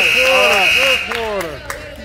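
A buzzer blares in a large echoing gym.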